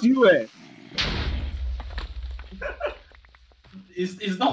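A game creature bursts into a puff of smoke with a low rumble.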